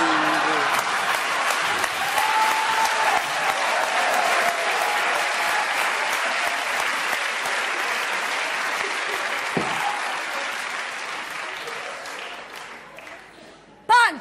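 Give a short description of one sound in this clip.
A crowd applauds and cheers loudly in a large hall.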